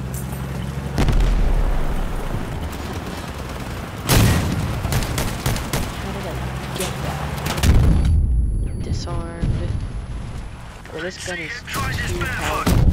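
Loud explosions boom with a rumbling after-echo.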